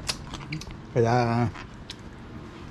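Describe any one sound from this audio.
A middle-aged man speaks briefly and casually close by.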